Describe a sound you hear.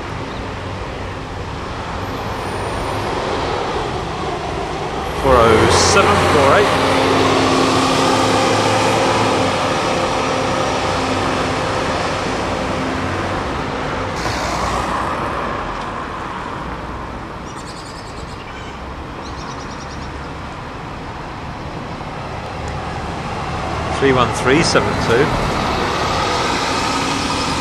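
A bus engine rumbles as buses drive past close by.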